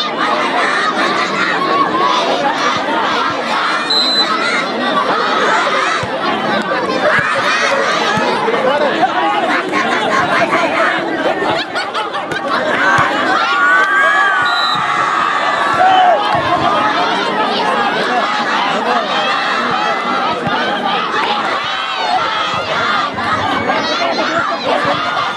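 A large outdoor crowd cheers and chatters loudly.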